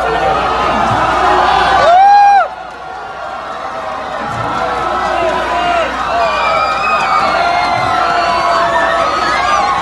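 A large crowd shouts and chants outdoors, close by.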